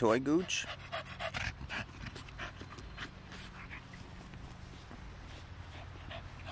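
A dog gnaws and scuffs at a leather boot.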